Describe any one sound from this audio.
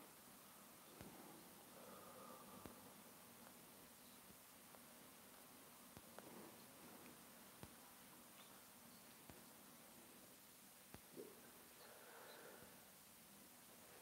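A man speaks softly and intermittently, close by.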